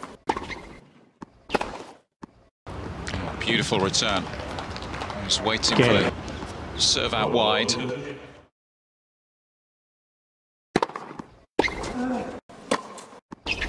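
A tennis racket strikes a ball on a hard court.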